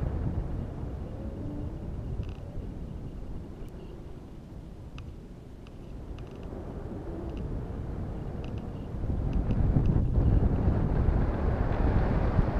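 Wind rumbles low against the microphone, growing stronger toward the end.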